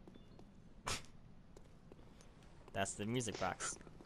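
Footsteps tap on a stone pavement.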